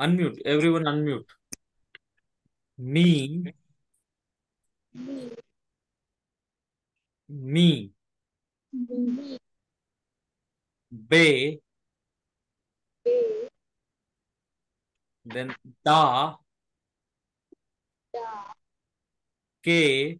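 A man speaks slowly and clearly over an online call, pausing between short phrases.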